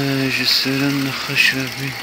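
Water sprays and splashes from a hose.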